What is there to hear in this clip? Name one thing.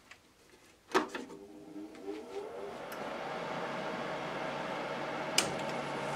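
A lathe motor starts and runs with a steady hum.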